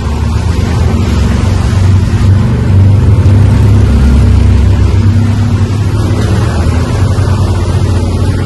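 Wind rushes past an open vehicle.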